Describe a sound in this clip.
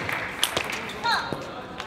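Rubber-soled shoes squeak on a hall floor.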